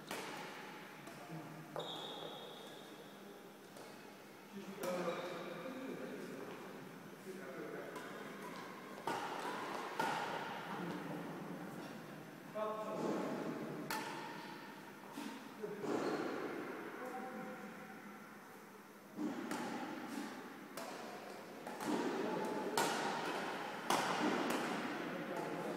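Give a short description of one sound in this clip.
Rackets strike a shuttlecock in sharp pops, echoing in a large hall.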